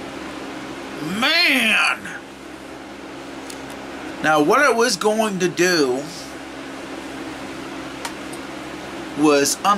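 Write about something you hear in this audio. A man speaks expressively and close up.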